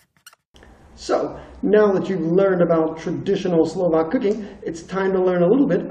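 A young man speaks calmly in a room with a slight echo.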